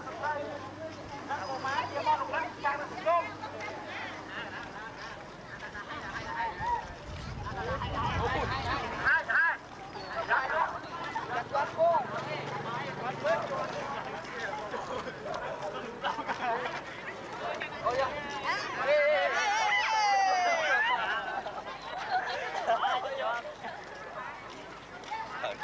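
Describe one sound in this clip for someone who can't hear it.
A crowd of men and women chatters and calls out nearby outdoors.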